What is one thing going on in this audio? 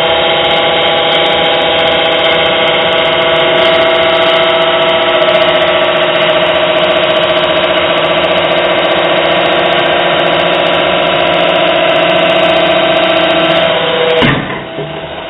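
An electric pump hums steadily and loudly.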